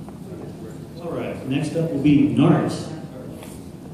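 A man speaks into a microphone over a loudspeaker in a large room.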